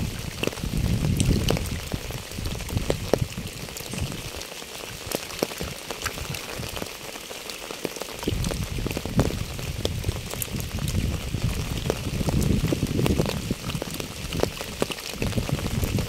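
Rain falls steadily, pattering and dripping on wet pavement and fallen leaves.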